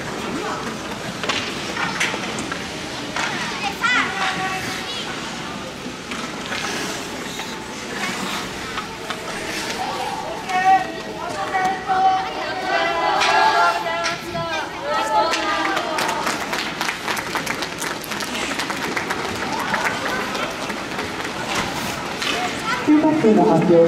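Ice skates scrape and glide across the ice.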